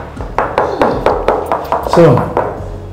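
A man knocks quickly on a tiled wall.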